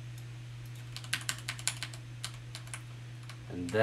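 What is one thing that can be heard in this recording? A computer mouse clicks several times in quick succession.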